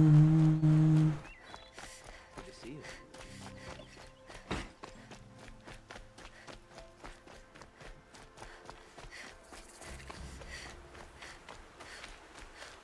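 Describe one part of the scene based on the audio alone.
Quick footsteps patter on a dirt path.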